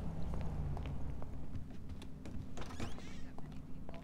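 A heavy door swings open.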